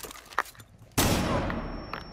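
A stun grenade goes off with a loud, sharp bang.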